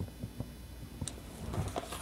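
A pencil scratches lightly along a ruler.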